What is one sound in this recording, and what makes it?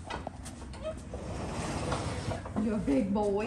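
A stall door slides open with a rumbling scrape.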